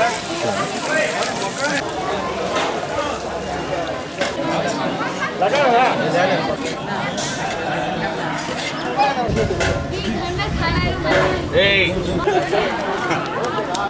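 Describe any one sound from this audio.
A crowd of men chatters nearby.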